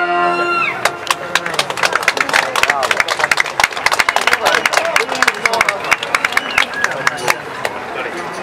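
A large crowd claps hands rapidly.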